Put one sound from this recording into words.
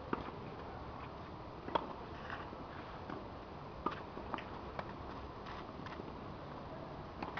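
Shoes scuff and slide on a clay court.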